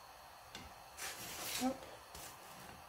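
A hand pats and presses soft bread on a pan with a dull rustle.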